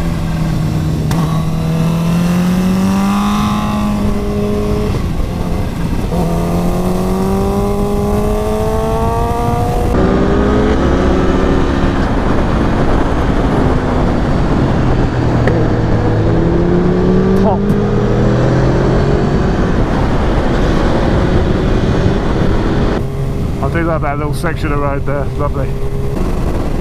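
Wind rushes loudly past at speed.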